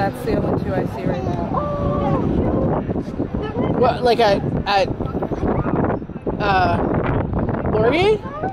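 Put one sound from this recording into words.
Women and men chatter excitedly close by outdoors.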